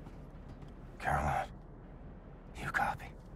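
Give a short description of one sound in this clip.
Hands and boots clank on a metal ladder.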